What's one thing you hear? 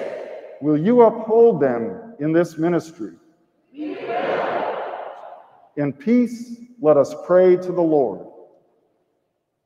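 A group of men and women sing together in a large, echoing hall.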